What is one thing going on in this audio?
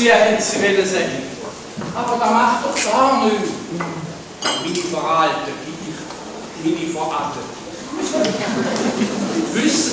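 A middle-aged man and an older woman talk with animation in a large hall.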